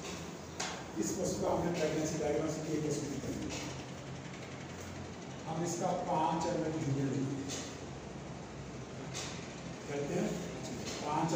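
A man speaks calmly into a nearby microphone, lecturing.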